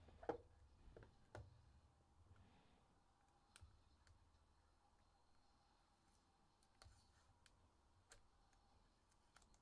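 Plastic card cases click and tap against each other.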